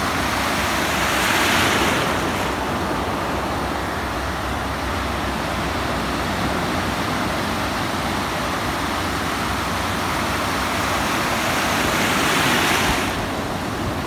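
A wave breaks and rushes in, swelling loudly.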